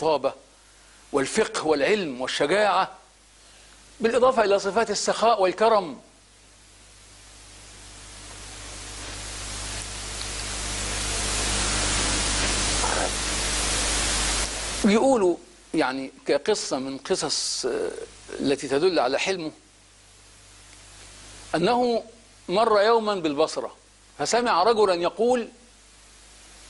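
A middle-aged man speaks with animation into a close microphone, pausing often.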